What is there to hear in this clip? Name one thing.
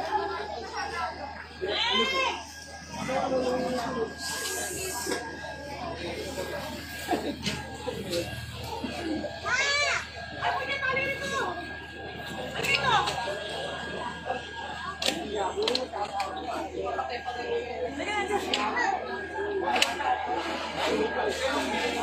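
A crowd of people talks and shouts excitedly close by, outdoors.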